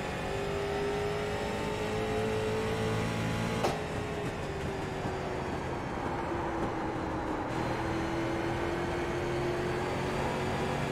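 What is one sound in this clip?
A race car engine roars steadily, its pitch shifting slightly.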